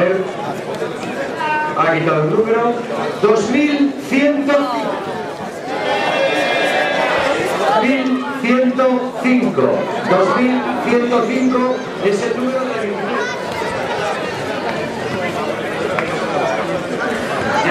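A crowd of adults and children chatters close by.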